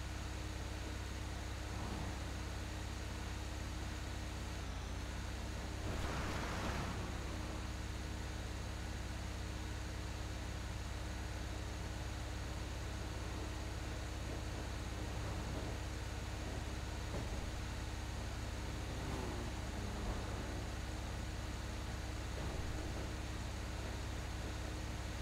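A truck engine hums steadily as the truck drives along a road.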